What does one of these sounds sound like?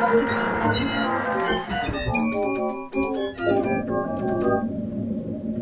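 Electronic synthesizer notes play in quick bright runs.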